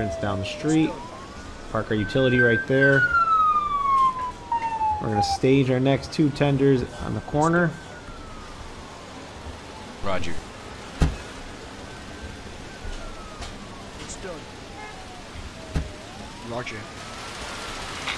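Fire truck sirens wail, rising and falling.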